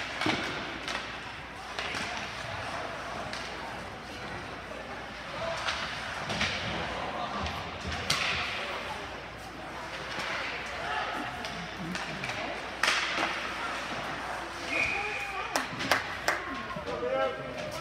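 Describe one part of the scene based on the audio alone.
Skates scrape and carve across ice in a large echoing rink.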